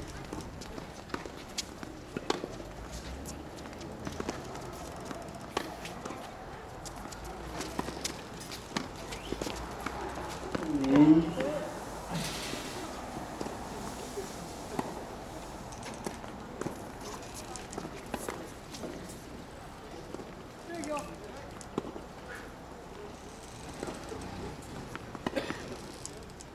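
Tennis shoes scuff and squeak on a hard court.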